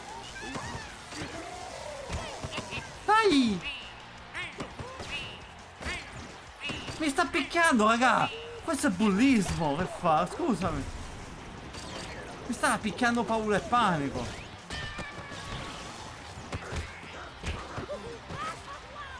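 Cartoon footballers kick a ball with sharp thumps.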